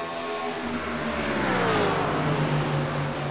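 A race car engine whooshes past, its pitch dropping.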